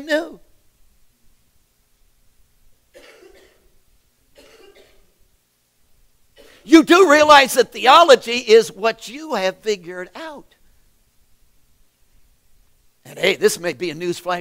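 A middle-aged man speaks with animation, pausing between phrases.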